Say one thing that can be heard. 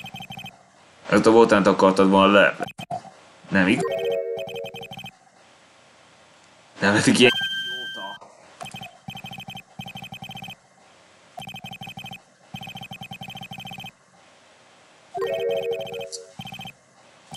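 A young man talks and laughs close to a microphone.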